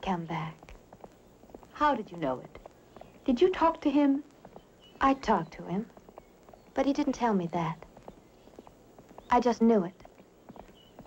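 A young woman speaks calmly and brightly up close.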